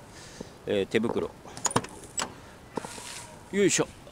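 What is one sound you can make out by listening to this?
A vehicle door clicks open.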